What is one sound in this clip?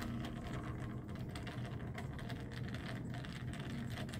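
A screwdriver turns with faint clicks.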